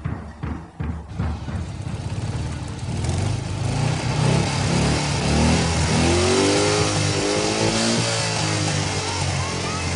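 A motorcycle engine idles close by with a low rumble.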